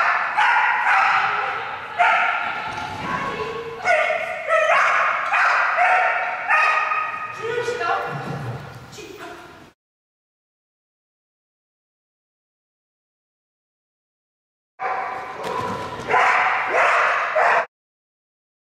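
A woman calls out commands to a dog.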